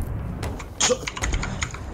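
Water sprays hard through a leak.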